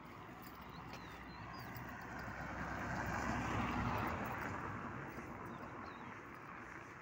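A car drives past nearby, rising and then fading.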